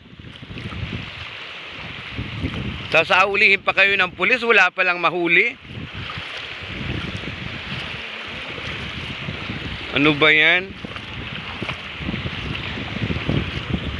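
Small waves wash and lap on a shore outdoors.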